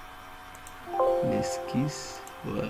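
A computer alert chimes briefly.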